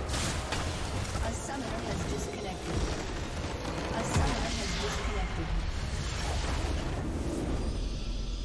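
Video game battle effects crash and boom.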